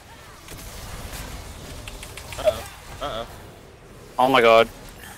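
Magic blasts and battle effects crackle and whoosh.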